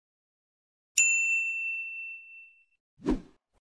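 A small bell chimes once and rings out.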